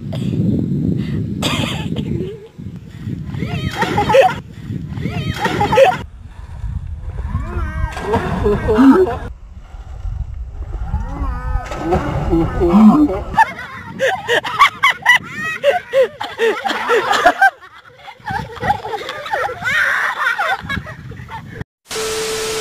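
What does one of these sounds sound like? Children and adults shout and laugh nearby outdoors.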